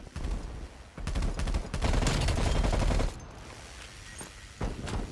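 A rifle fires rapid bursts of gunshots, loud and close.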